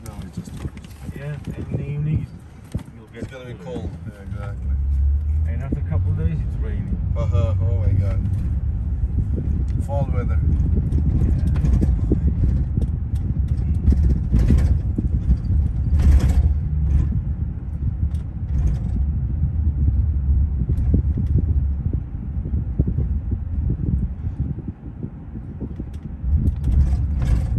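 A car engine hums and tyres rumble on the road, heard from inside the car.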